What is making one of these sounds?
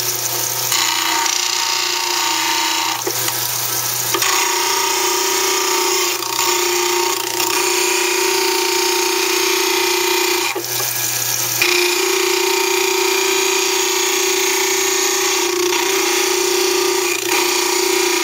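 A plaster model grinds against a spinning wheel.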